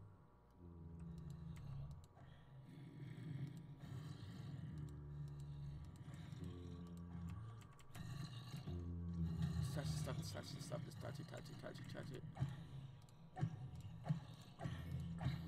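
Zombies groan in low, moaning voices.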